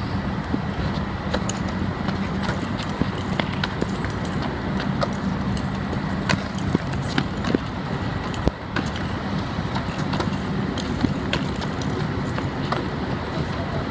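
Sneakers squeak and shuffle on a hard court.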